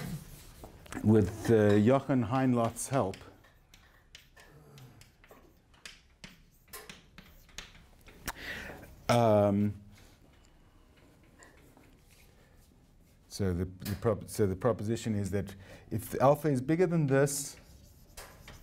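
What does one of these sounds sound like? A middle-aged man lectures calmly in a room with a slight echo.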